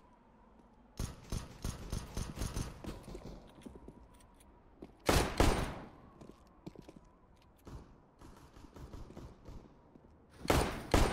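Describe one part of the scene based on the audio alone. Footsteps tap quickly on a hard surface.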